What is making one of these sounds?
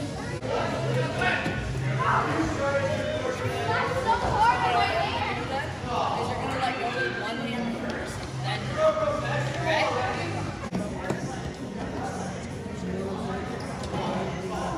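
Children's feet thump as they run on a hard floor.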